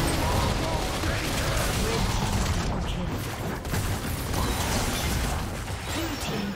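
Fantasy battle sound effects of spells and blows crackle and burst rapidly.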